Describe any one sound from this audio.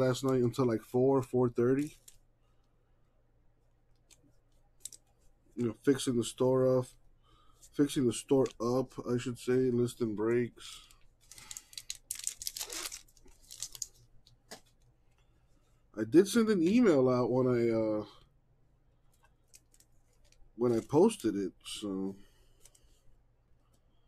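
Cardboard trading cards rustle and slide against each other in hands.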